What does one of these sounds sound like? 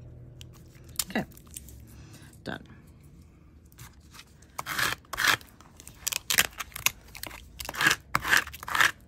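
Crumpled foil crinkles and rustles as hands press and rub it.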